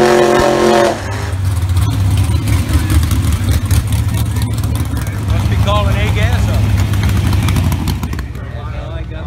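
A car engine rumbles and idles loudly.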